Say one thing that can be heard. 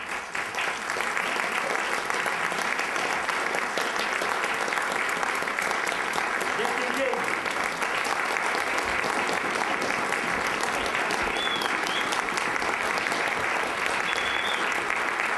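A large ensemble of plucked string instruments plays together in an echoing hall.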